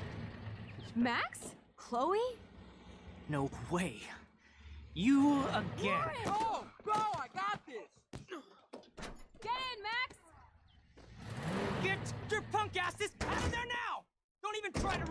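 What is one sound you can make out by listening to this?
A young woman speaks in surprise.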